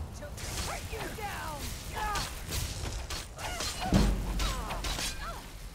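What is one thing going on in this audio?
Weapons clash and thud in a close fight.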